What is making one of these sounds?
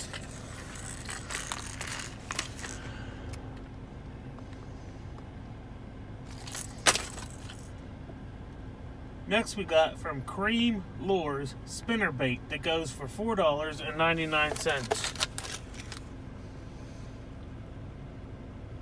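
Stiff plastic packaging crinkles and rustles in a hand.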